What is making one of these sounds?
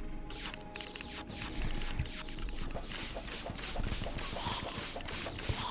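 Rapid magic shots fire again and again with sharp zapping sounds.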